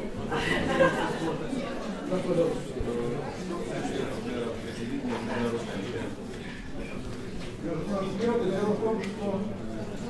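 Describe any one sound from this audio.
An elderly man speaks with animation to an audience.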